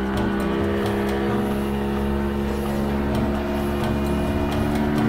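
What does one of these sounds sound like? Water churns and splashes in the boat's wake.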